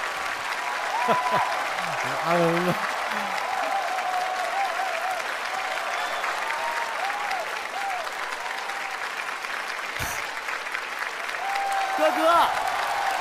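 A young man talks and laughs through a microphone.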